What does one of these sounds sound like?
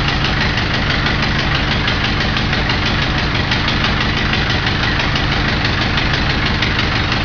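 A car engine idles loudly and steadily close by.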